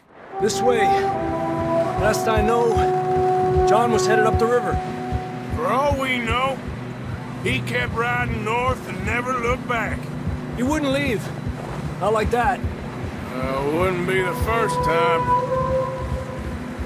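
A man speaks in a low, steady voice.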